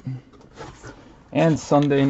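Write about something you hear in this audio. A cardboard box flap rustles and scrapes.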